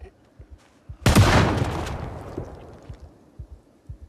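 A loud crash rings out and slowly fades.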